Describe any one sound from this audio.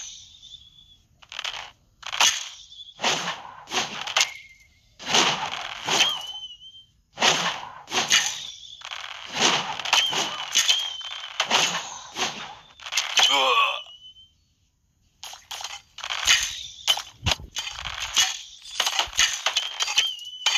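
Weapons clash and strike in quick, repeated bursts.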